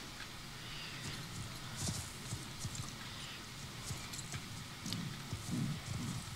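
A horse's hooves thud softly as it walks.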